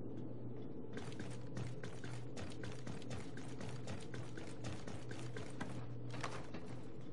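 Heavy boots thud quickly on a hard metal floor.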